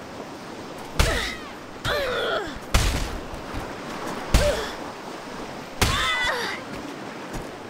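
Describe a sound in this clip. A young woman cries out in pain.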